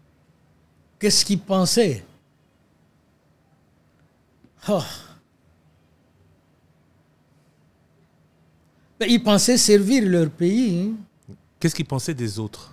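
An elderly man speaks slowly and calmly into a close microphone, with pauses.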